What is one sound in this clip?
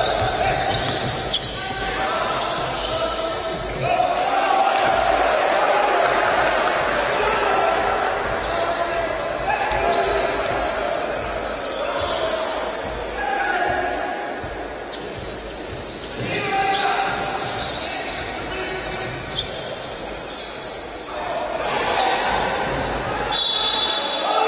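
A crowd murmurs and cheers in an echoing indoor hall.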